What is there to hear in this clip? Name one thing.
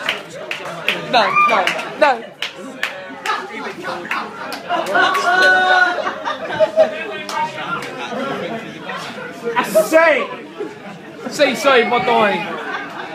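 A small audience laughs and cheers nearby.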